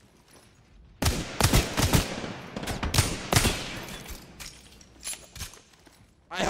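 Gunshots fire in rapid bursts, loud and sharp.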